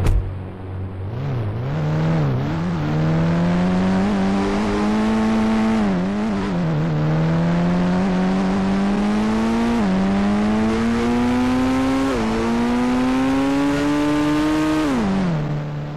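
A car engine revs up repeatedly, rising in pitch and dropping at each gear change.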